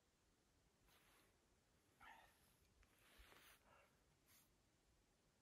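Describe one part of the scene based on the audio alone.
Clothing rustles as a person shifts on the snow.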